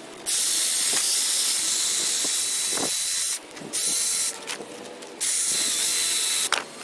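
A power grinder whines loudly in bursts, spinning up and stopping again.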